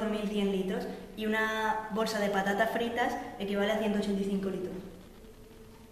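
A young girl speaks clearly close by.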